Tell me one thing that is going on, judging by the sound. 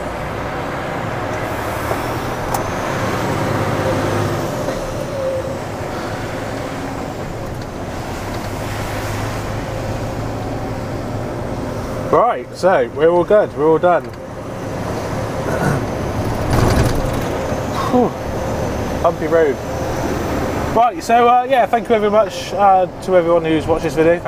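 A truck engine hums steadily inside the cab.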